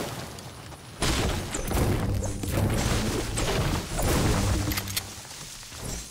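A pickaxe chops into a tree with repeated hard knocks.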